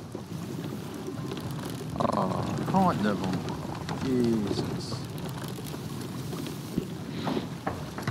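A sail flaps in the wind.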